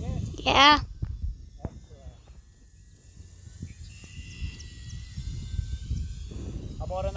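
A model airplane's motor hums faintly high overhead.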